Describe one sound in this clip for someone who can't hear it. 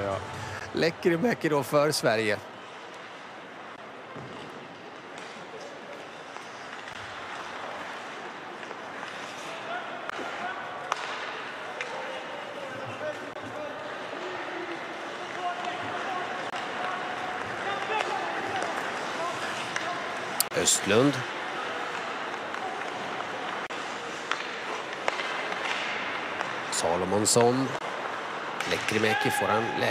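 Skate blades scrape and hiss across the ice in a large echoing arena.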